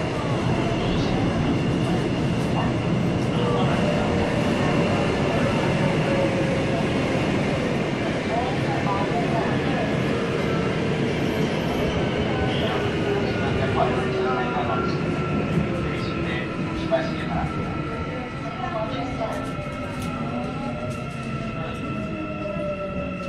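A subway train rumbles through a tunnel.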